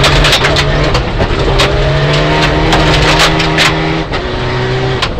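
Gravel sprays and rattles against the underside of the car.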